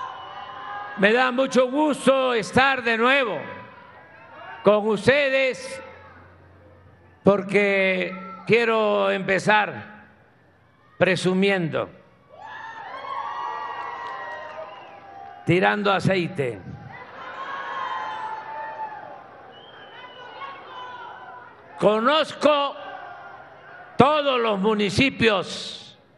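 An elderly man speaks with animation through a microphone in a large echoing space.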